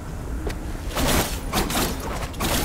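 A blade swishes through the air.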